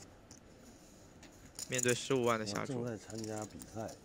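Poker chips click together as a player handles them.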